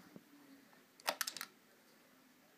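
A music player clicks as it is lifted from a plastic dock.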